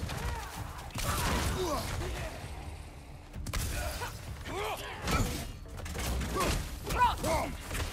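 Heavy blows thud and clash in a fight.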